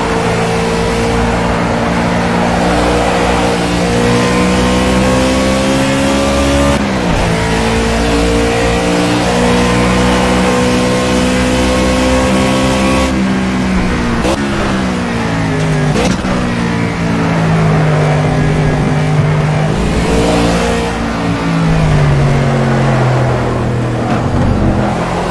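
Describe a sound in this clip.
A race car engine roars loudly, its pitch rising as it speeds up and dropping sharply at each gear change.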